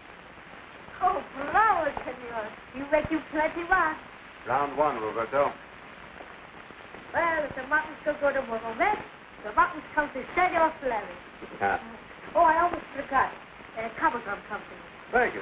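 A young boy speaks eagerly.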